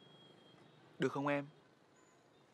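A young man speaks a short phrase close by.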